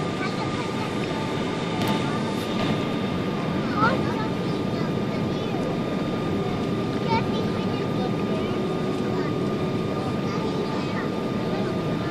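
Jet engines roar steadily inside an airplane cabin in flight.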